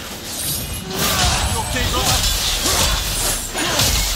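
Axe blows strike a creature with heavy thuds.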